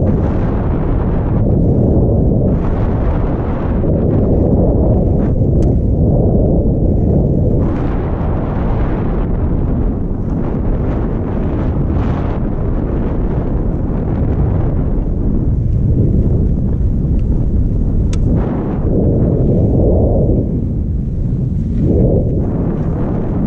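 Wind rumbles loudly across the microphone.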